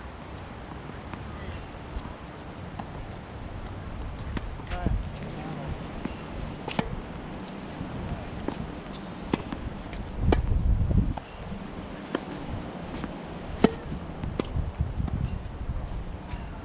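Tennis balls bounce on a hard court.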